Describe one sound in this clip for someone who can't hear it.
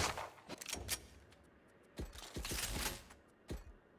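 Short clicks sound as menu items are selected.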